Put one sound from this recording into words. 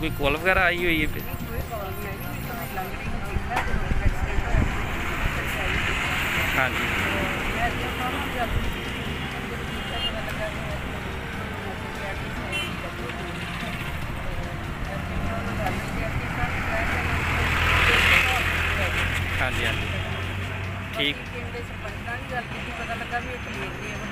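A middle-aged woman speaks steadily to a microphone close by, outdoors.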